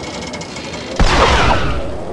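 A helicopter hovers overhead with a steady whirring of its rotor.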